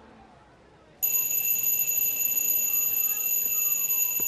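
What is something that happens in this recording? An alarm clock rings loudly and steadily.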